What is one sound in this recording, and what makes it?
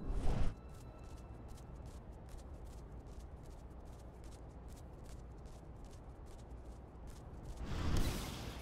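Quick, light footsteps patter across a hard floor.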